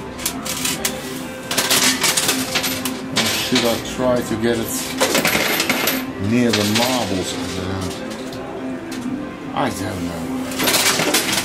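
Coins clink and clatter.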